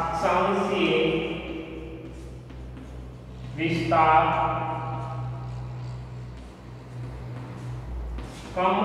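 A man speaks in a lecturing tone, with a slight room echo.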